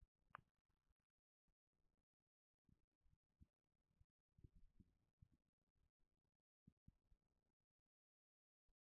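Large bird wings flap with soft, rustling thumps.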